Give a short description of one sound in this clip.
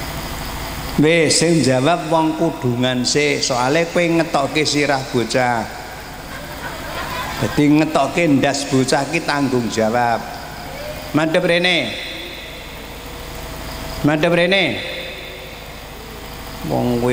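An elderly man speaks slowly into a microphone, heard through loudspeakers.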